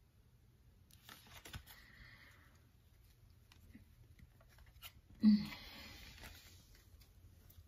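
Playing cards rustle and slide as they are handled.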